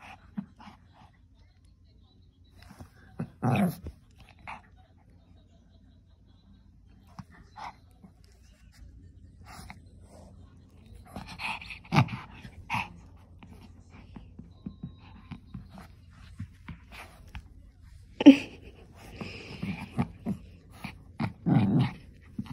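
A small dog rustles against soft fabric and bedding close by.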